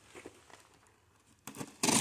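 A blade slices through cardboard.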